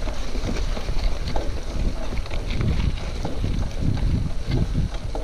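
Bicycle tyres crunch and rattle over a leafy dirt track.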